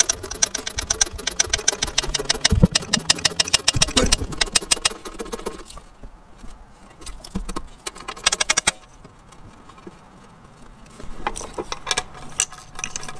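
Small metal parts click and tap rapidly against an engine.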